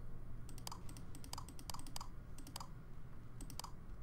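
Switches click as they are flipped.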